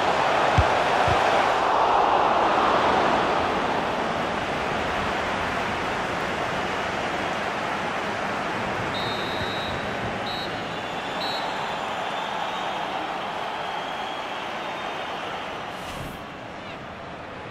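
A large stadium crowd roars steadily and slowly fades.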